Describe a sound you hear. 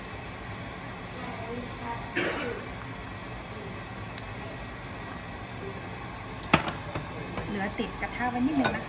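Oil sizzles quietly in a pan.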